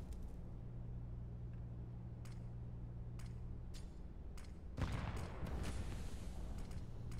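Footsteps tap steadily on stone pavement.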